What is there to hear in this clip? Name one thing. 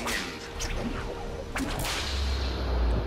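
A whip cracks sharply.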